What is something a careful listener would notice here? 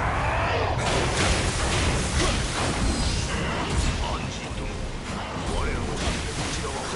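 Weapon blows strike and clash in a fight.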